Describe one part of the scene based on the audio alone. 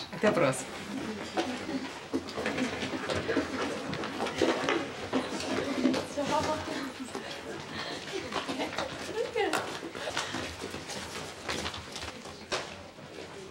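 A crowd of teenagers chatters.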